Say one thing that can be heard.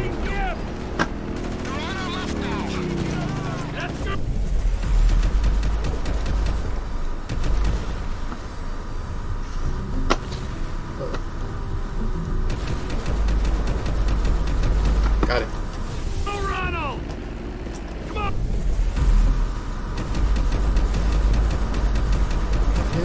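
Gunshots crack out now and then.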